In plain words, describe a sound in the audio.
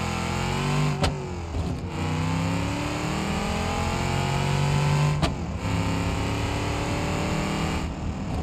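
A car engine revs up steadily, rising in pitch and dropping briefly at each gear change.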